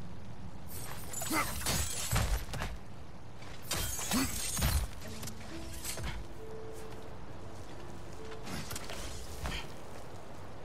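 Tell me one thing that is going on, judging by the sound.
Hands grip and scrape against rock while climbing.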